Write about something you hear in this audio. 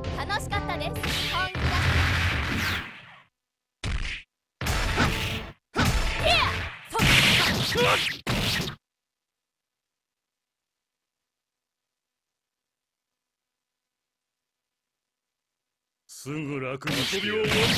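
Game fighters land punches and blasts with loud impact effects.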